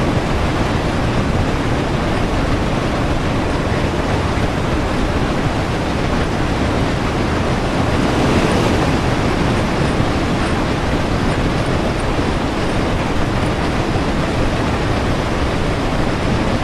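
A steam locomotive rumbles and roars steadily as it runs along the track.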